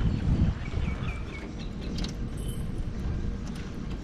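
A metal tap handle squeaks as a hand turns it.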